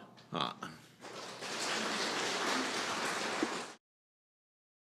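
A crowd applauds in a large room.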